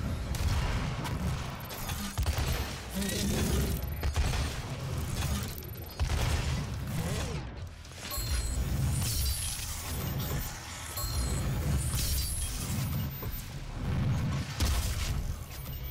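A heavy gun fires in loud, booming blasts.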